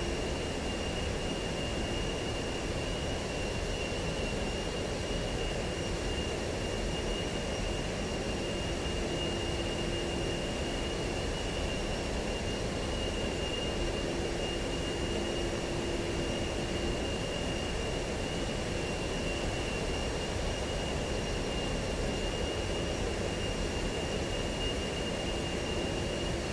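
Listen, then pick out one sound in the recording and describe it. A jet engine roars steadily, heard from inside a cockpit.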